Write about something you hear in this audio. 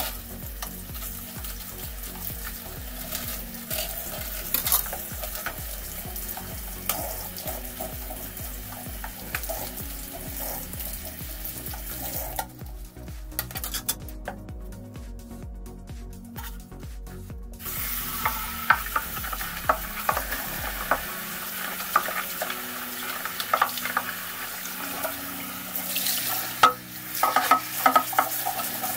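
A sponge scrubs and squeaks on glass.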